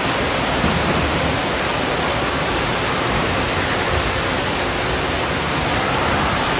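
A waterfall splashes steadily into a pool in a large echoing hall.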